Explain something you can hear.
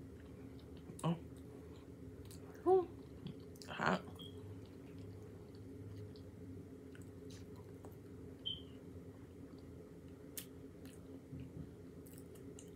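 A fork scrapes and clinks in a bowl.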